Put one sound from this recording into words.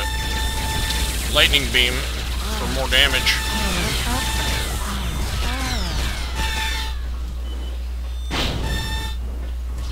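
An energy gun fires rapid buzzing shots.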